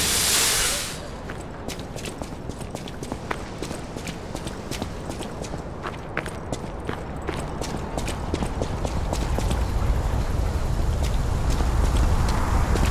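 Footsteps clatter quickly on wet cobblestones.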